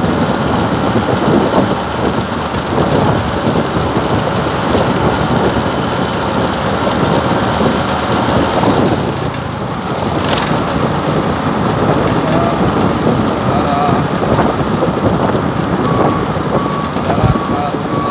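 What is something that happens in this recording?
Wind rushes loudly past a moving motorbike.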